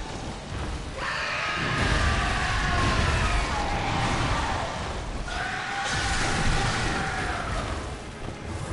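A monstrous beast lets out long, wailing roars.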